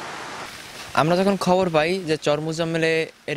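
A young man speaks calmly into a microphone close by.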